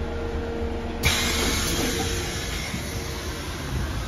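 A bus door opens with a short hiss.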